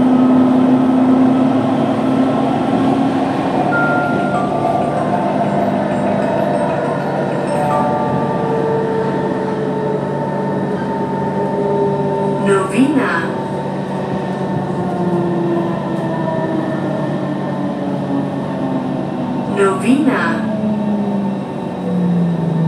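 A subway train rumbles and hums steadily as it runs along the track.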